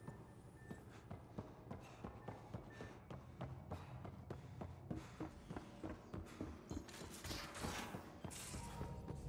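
Footsteps run quickly across a hard metal floor.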